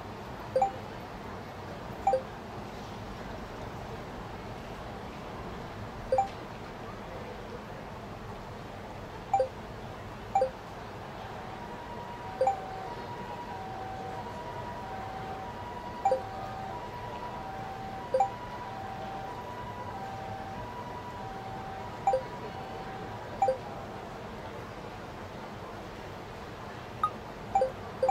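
A short two-note chime sounds each time a message pops up.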